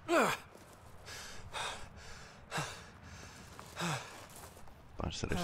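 A young man breathes hard.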